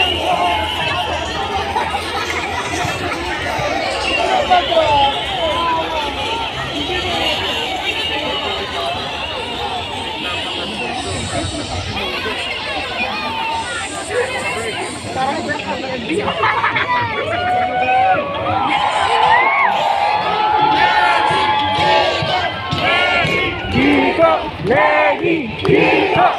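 A large outdoor crowd cheers and chatters loudly all around.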